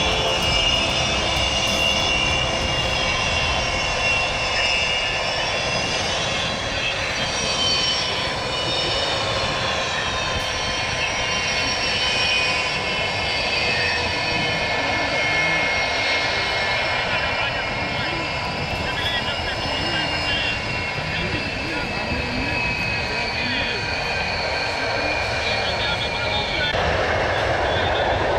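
Jet engines whine loudly with a high, steady scream.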